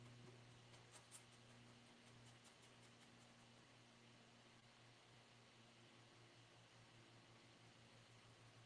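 A pen scratches and taps on paper.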